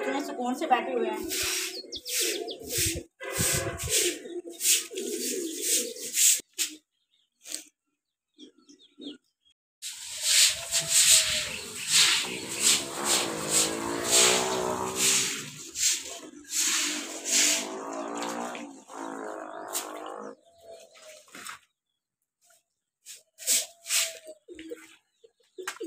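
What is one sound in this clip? A broom swishes and scrapes across a wet floor.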